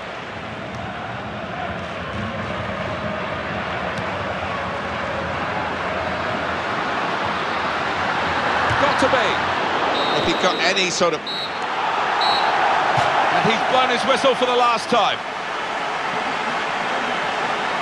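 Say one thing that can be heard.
A large stadium crowd roars steadily and swells louder for a while.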